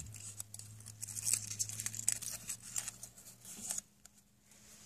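Paper crinkles and rustles between fingers.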